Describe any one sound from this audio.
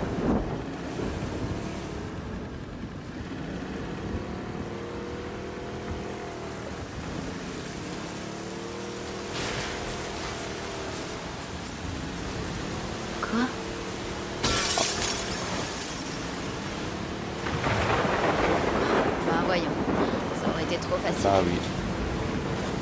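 Water churns and splashes against a small boat's hull.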